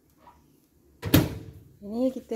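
A microwave door shuts with a thud.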